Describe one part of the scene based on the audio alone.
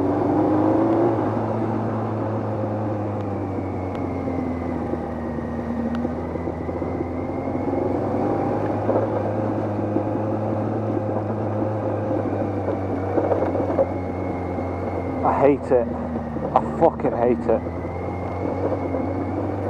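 A motorcycle engine hums steadily up close as the bike rides along.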